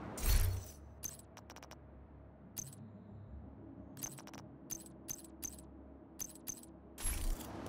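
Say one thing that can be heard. Short electronic clicks sound as menu options are selected.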